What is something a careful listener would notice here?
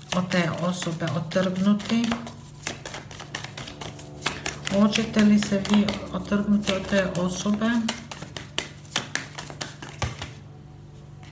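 Cards are shuffled with quick flicking and riffling.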